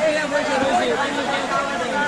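A young man talks cheerfully to someone close by.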